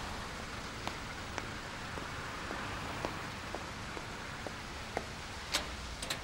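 Footsteps tap on a stone path.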